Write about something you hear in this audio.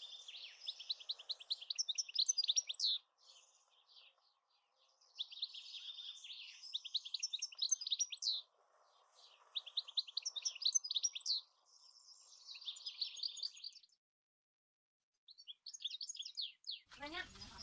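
Scissors snip through grass blades.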